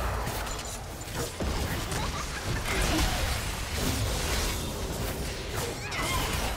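Spells and hits crackle and whoosh in a video game battle.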